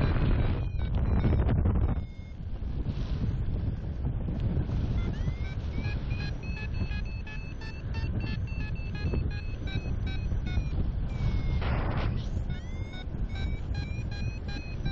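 Wind rushes and buffets steadily outdoors.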